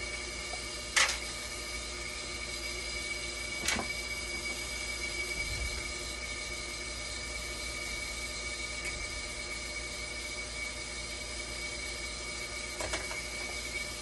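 Parts click and knock inside an open dialysis machine during a repair.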